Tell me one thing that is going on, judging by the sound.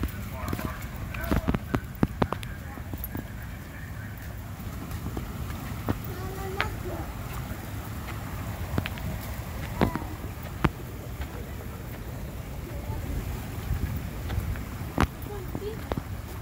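A stream of water flows and gurgles over rocks.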